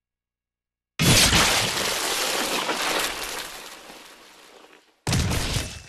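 A sword slashes through the air with a loud rushing whoosh.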